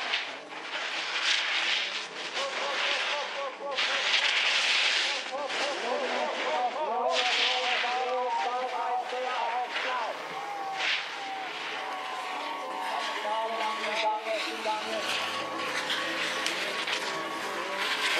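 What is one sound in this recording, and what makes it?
Snowboards carve and scrape across hard snow with a loud hiss.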